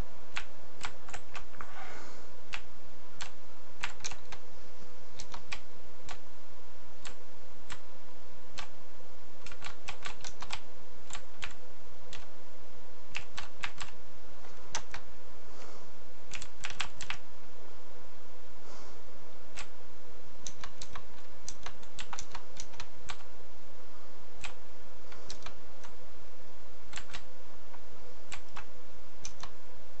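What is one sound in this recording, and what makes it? Footsteps tap quickly on a hard floor in short bursts.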